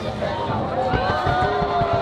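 Fireworks hiss and crackle over the water.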